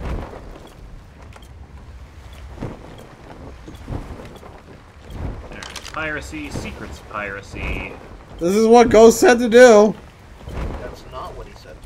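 Waves splash against a wooden boat's hull.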